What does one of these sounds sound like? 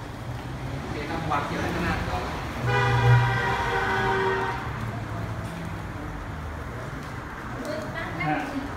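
Men and women murmur quietly nearby.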